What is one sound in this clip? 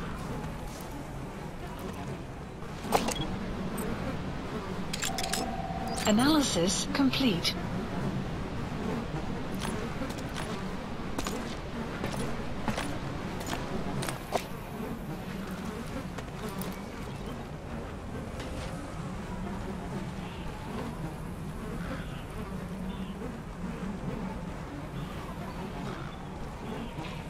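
Dry grass rustles softly as a person crawls through it.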